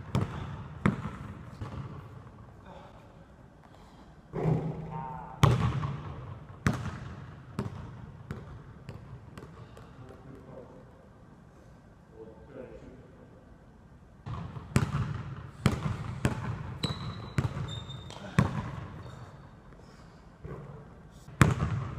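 A basketball bounces on a wooden floor, echoing through a large hall.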